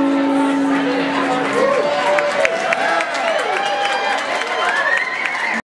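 A steel guitar plays sliding, gliding notes.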